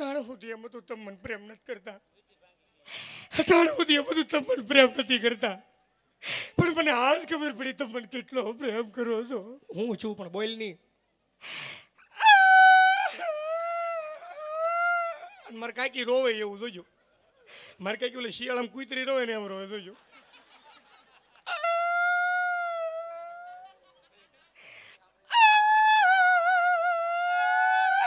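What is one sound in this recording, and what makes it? A man speaks and sings with animation through a microphone, heard over loudspeakers.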